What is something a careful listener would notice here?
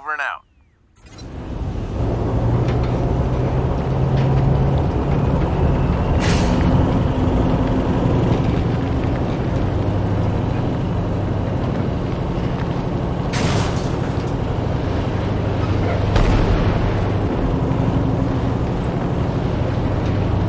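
A heavy truck engine rumbles steadily as the vehicle drives along.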